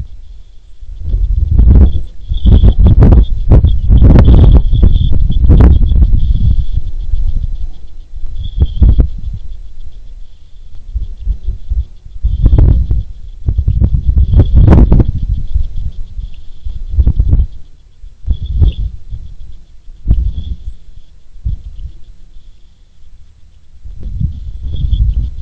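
Gusts of wind rumble against the microphone outdoors.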